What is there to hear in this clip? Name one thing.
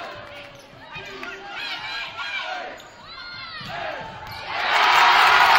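A volleyball is struck with sharp slaps during a rally.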